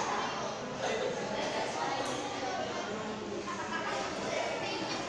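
A table tennis ball clicks back and forth on paddles and a table, in a room with some echo.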